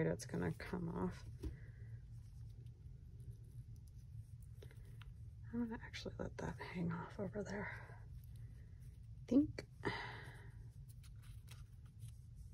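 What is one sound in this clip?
Paper rustles and crinkles under pressing fingers.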